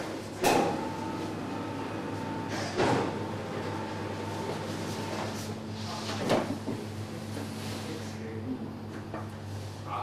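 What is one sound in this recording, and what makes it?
A second young man talks and laughs close by.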